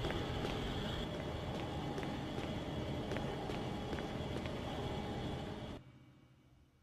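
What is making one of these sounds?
Machinery hums and rumbles loudly, then cuts out.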